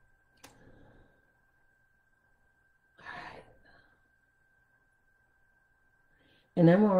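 An elderly woman speaks calmly and slowly into a nearby microphone, pausing between phrases.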